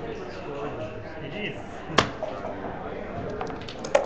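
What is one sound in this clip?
Game pieces clack against a board.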